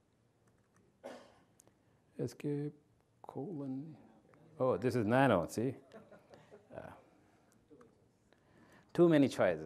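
A man speaks through a microphone in a large room, in short bursts with pauses.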